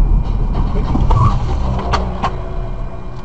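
A scooter crashes and scrapes along the road.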